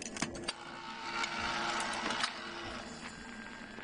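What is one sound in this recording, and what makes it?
A card slides into a machine's slot with a soft scrape.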